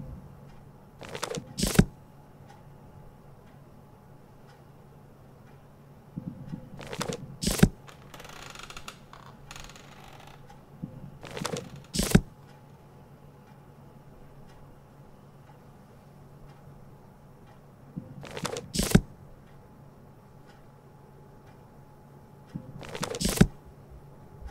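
Books slide and thud into place in a short burst, again and again.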